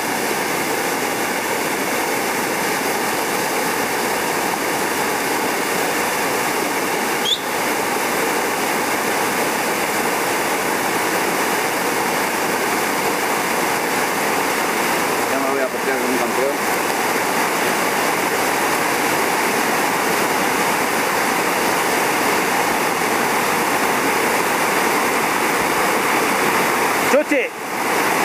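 Whitewater roars and rushes loudly over rocks.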